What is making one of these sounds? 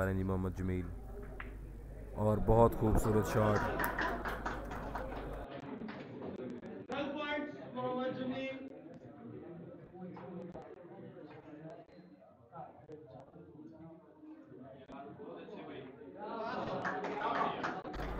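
Snooker balls clack against each other.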